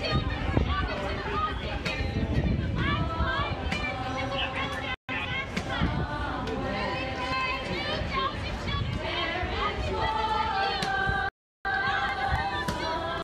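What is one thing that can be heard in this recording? A crowd of people chant and talk outdoors nearby.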